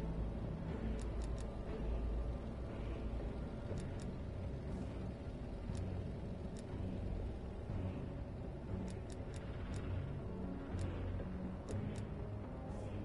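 Short soft clicks tick as a menu selection moves.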